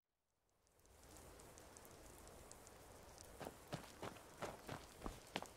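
A soft wind hisses through pine trees outdoors.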